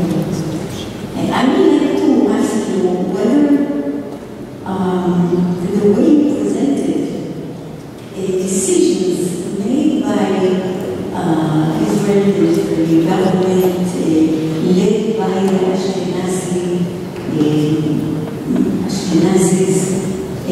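A woman speaks steadily into a microphone, heard over loudspeakers in a large echoing hall.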